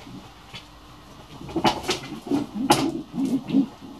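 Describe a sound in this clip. Wooden objects knock and clatter as a man handles them.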